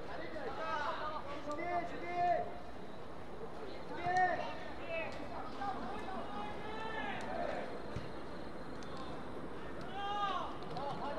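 Young women shout to each other from across an open field.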